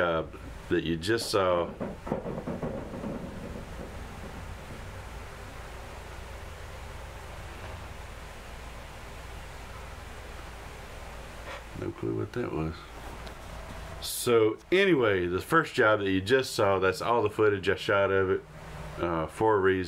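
A middle-aged man speaks with animation close to a microphone, pausing in between.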